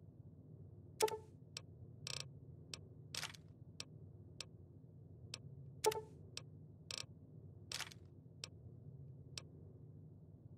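Footsteps crunch on loose rubble.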